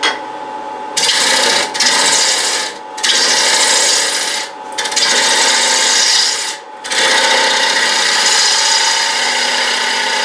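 A tool scrapes loudly against spinning wood in bursts.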